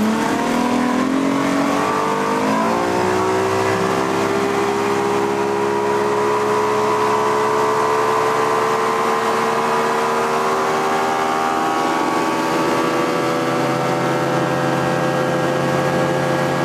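Water rushes and churns in a boat's wake.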